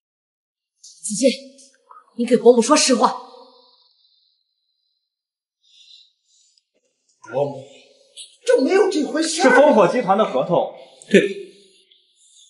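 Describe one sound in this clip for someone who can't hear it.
A middle-aged woman speaks firmly and questioningly.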